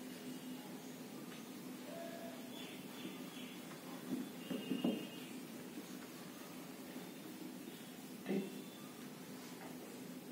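A duster rubs and squeaks across a whiteboard.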